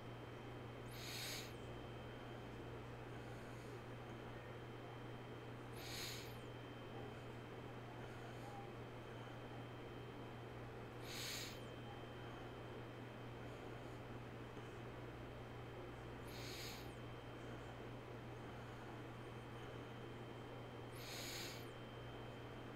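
A man breathes slowly and steadily near a microphone.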